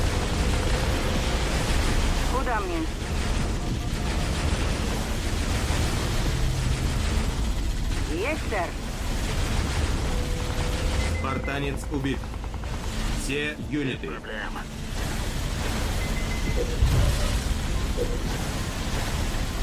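Laser weapons and guns fire rapidly in a loud battle.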